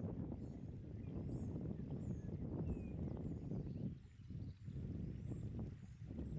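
A shallow stream gurgles and trickles over rocks.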